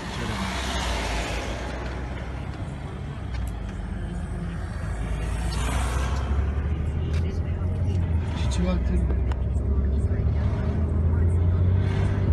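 A car engine hums steadily while driving along a road.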